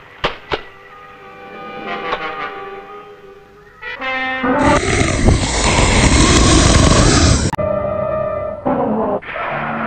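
A large monster roars loudly.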